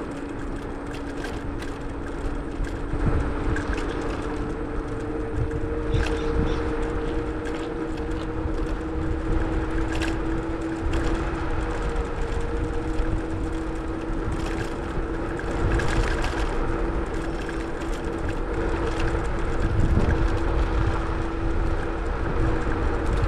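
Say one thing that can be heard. Wheels roll steadily over rough, cracked pavement.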